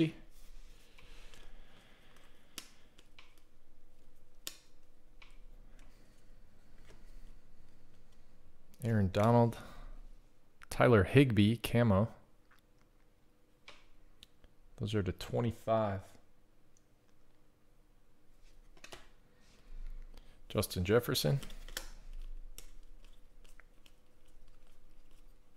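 Trading cards rustle and slide softly as they are shuffled by hand.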